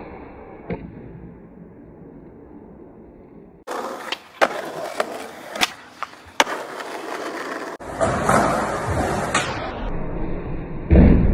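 Skateboard wheels roll over concrete.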